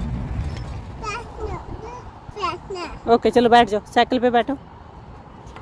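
A little girl talks close by in a high voice.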